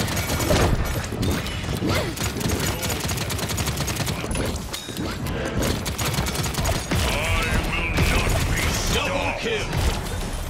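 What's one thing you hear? Game sound effects whoosh and chime.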